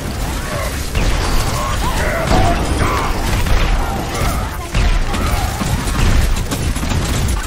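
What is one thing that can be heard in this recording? Electric blasts crackle and boom.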